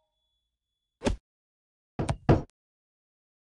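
A golf ball is struck with a sharp tap.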